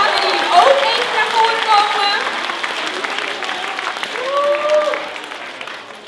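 A crowd of young people cheers and whoops loudly in a large hall.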